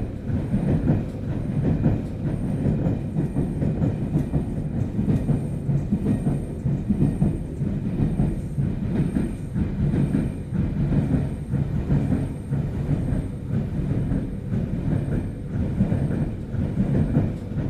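A train rumbles steadily as it rolls along the tracks.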